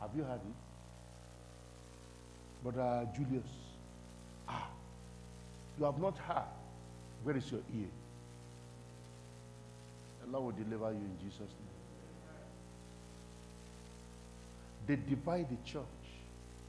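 A man preaches forcefully into a microphone in short, loud bursts with pauses between them.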